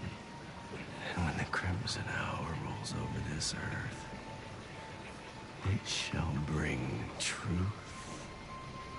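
A man speaks slowly in a low, menacing voice.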